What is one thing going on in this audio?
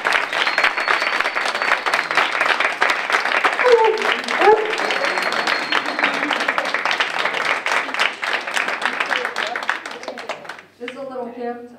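An audience applauds and cheers in a room.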